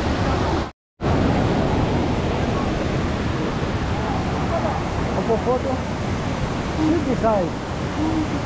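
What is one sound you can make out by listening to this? Adults chat in a crowd nearby.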